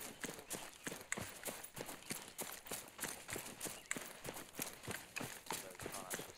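Footsteps crunch and rustle through dry undergrowth at a steady walking pace.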